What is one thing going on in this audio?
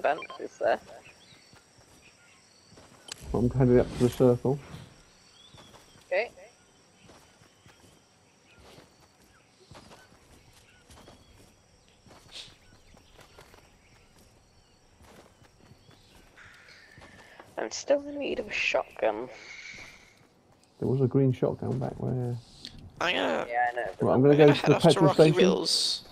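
Quick footsteps patter on grass.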